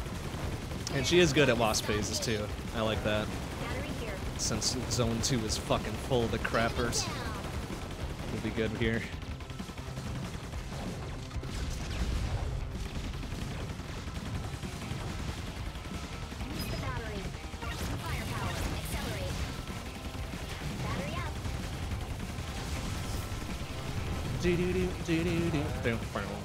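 Video game gunfire and explosions crackle rapidly.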